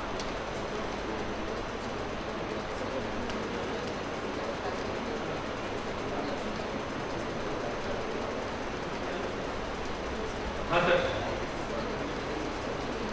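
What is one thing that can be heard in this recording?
An elderly man speaks calmly into a microphone, heard through loudspeakers.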